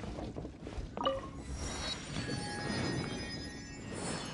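A bright magical chime rings out and shimmers.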